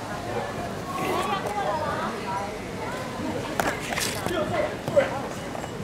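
Several adults chat as they walk by outdoors.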